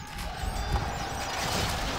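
Arrows whoosh through the air.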